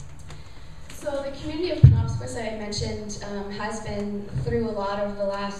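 A man speaks to an audience through a microphone in a room with some echo.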